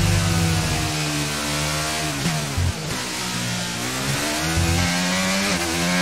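A racing car engine whines loudly, dropping in pitch as it slows and rising again as it speeds up.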